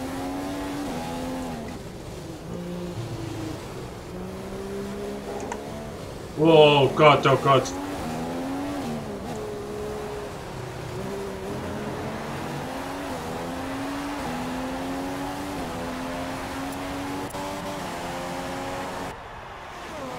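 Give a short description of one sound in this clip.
A racing car engine whines and revs up and down through gear changes.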